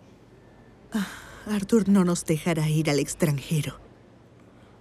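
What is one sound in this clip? A woman answers calmly up close.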